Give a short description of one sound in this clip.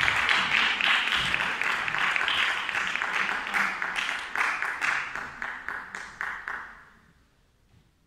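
An audience applauds in an echoing hall, then the clapping dies away.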